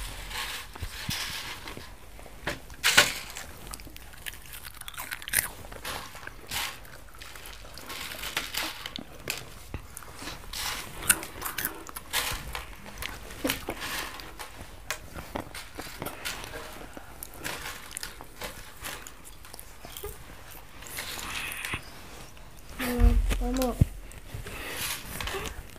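Hands rustle and scrape through a dish of crunchy snacks.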